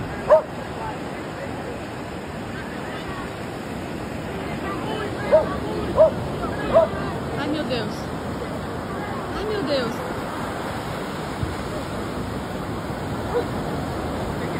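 Waves crash and wash onto a beach.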